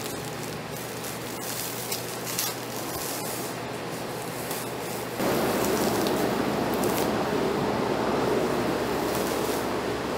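Masking tape peels off a car's paint with a sticky rip.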